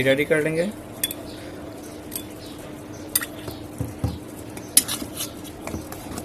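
A metal spoon stirs and clinks against a bowl.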